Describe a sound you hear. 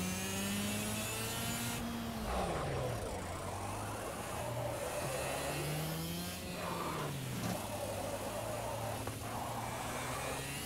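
A kart engine buzzes loudly, its pitch rising and falling with speed.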